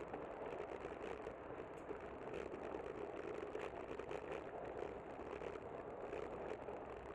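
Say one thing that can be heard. Wind rushes steadily over a moving bicycle.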